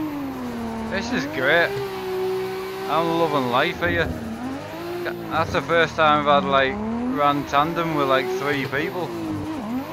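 Tyres screech in repeated bursts as a car slides through corners.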